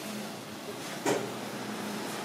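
A ladle clinks against a metal pot.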